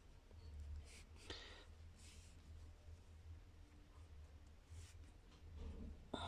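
A cord rustles softly as it is handled.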